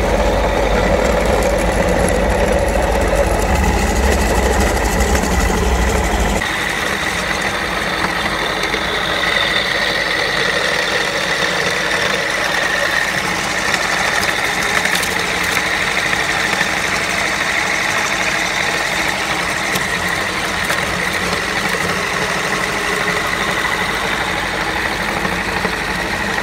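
A grinding machine motor hums steadily.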